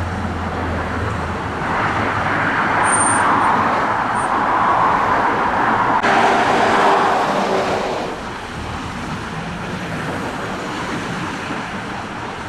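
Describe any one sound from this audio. A motorcycle engine drones as it rides between the cars.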